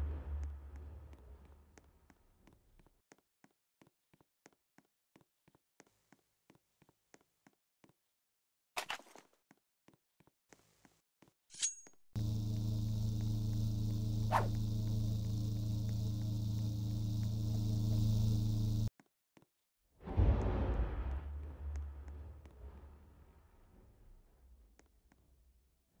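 A game character's footsteps tap quickly and lightly.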